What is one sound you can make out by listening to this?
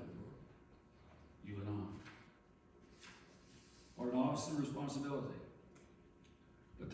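An elderly man speaks calmly into a microphone in a large echoing room.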